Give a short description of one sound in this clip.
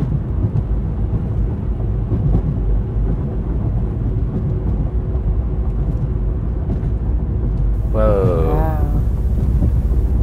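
Car tyres rumble steadily on a road.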